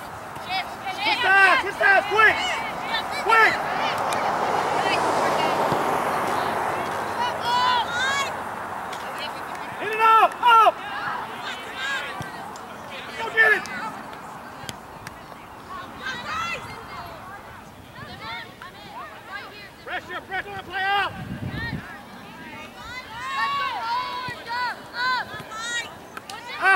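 Young women shout to each other from a distance outdoors.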